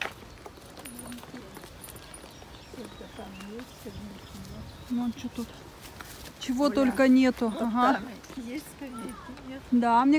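A woman talks nearby, outdoors.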